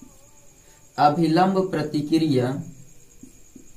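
A man speaks calmly and closely into a microphone.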